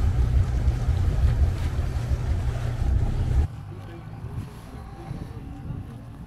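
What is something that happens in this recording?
Water laps gently against a dock.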